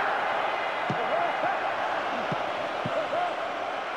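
A football is kicked several times with dull thuds.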